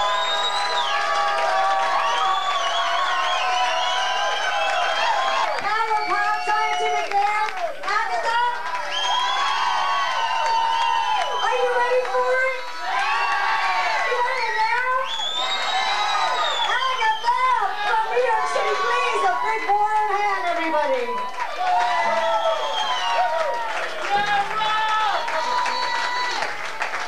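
Loud live music plays from a stage.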